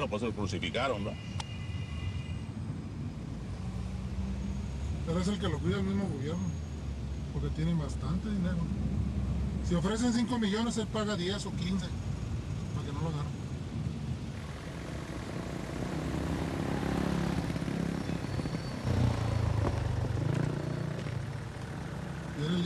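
Traffic idles and rumbles in a slow queue of cars.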